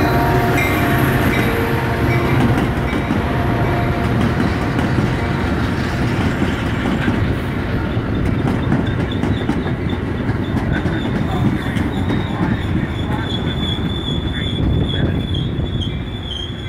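A passenger train rumbles loudly past on the rails, close by.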